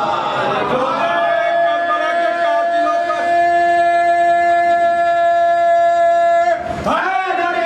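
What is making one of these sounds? A young man chants long, held notes through a microphone.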